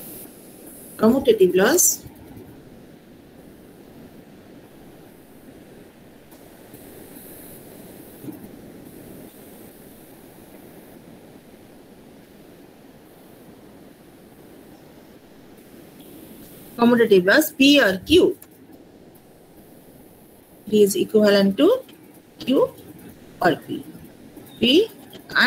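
A young woman speaks calmly in short bursts over an online call.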